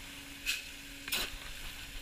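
A blowtorch flame hisses.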